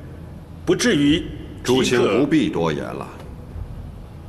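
An elderly man speaks calmly and gravely.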